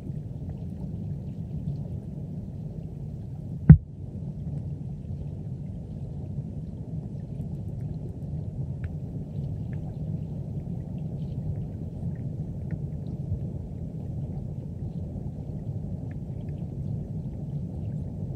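Water rumbles and churns with a low, muffled sound underwater.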